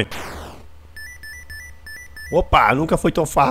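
Electronic video game bleeps chirp in short bursts.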